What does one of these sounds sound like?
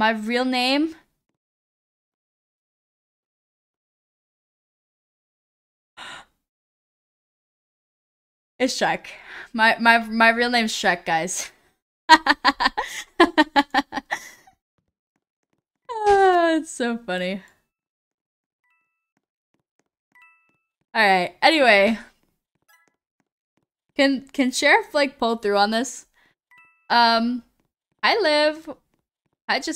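A young woman talks and laughs with animation into a microphone.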